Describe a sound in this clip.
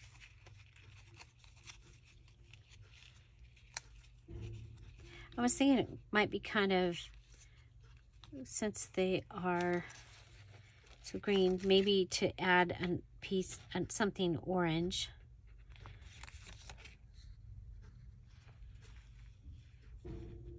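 Plastic sticker sheets rustle and crinkle.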